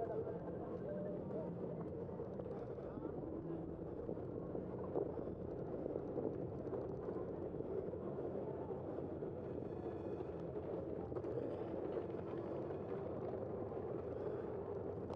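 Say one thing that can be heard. Tyres roll steadily over an asphalt street.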